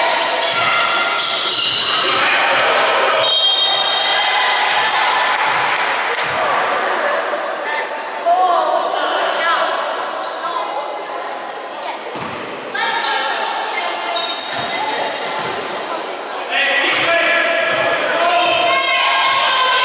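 Young women call out and shout to each other during play.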